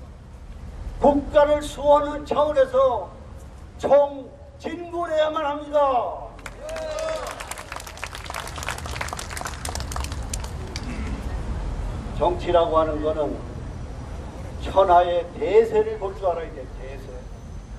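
An elderly man speaks forcefully into a microphone through a loudspeaker, outdoors.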